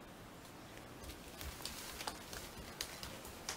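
Small footsteps patter on a wooden floor.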